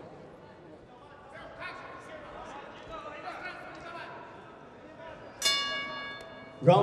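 A crowd murmurs and calls out in a large hall.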